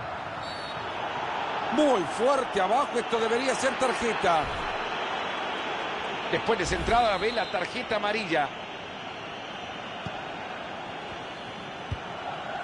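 A large stadium crowd murmurs and cheers steadily in the background.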